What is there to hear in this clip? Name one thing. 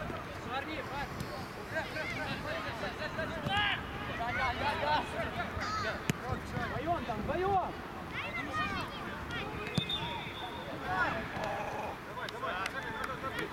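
Young players shout to each other outdoors on an open field.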